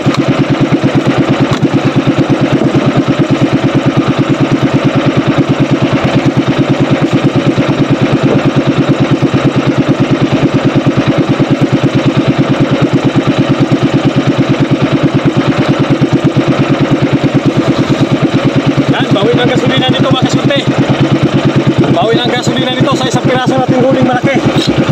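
A boat engine chugs loudly and steadily.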